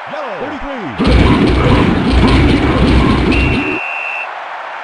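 Video game football players crash together in a tackle with heavy thuds.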